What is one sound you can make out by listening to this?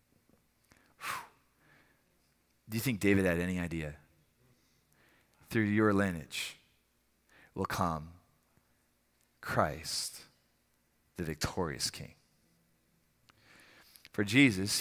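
A man speaks calmly into a headset microphone, with pauses between phrases.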